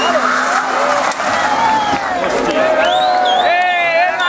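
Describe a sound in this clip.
Rally car tyres squeal on asphalt.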